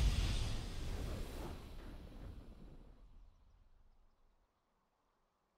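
A triumphant game victory fanfare plays loudly and fades away.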